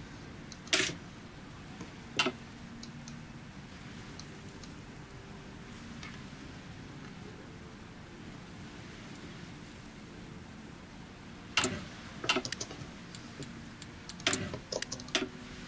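Short interface clicks sound as menus open and close.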